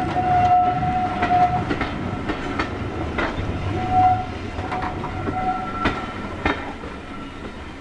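A train rumbles across a bridge overhead and fades away.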